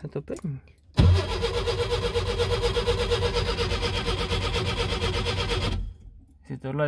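A car engine starts and idles steadily, then cuts off.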